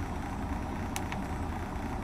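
A button clicks once.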